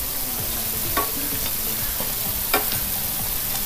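A metal spoon clinks against a pan.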